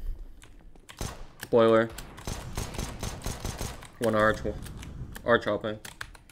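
A pistol fires a series of sharp shots.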